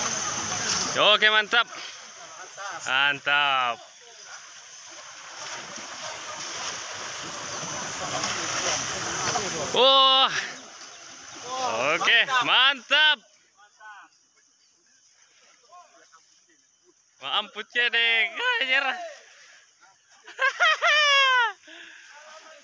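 Men shout and call out across the water.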